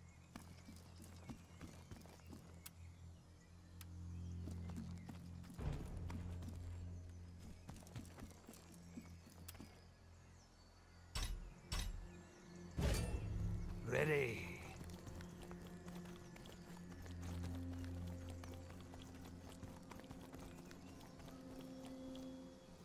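Footsteps thud on a dirt path.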